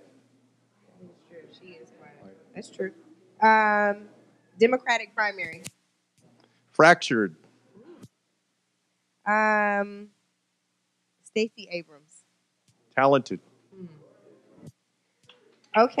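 A woman speaks into a microphone, asking questions.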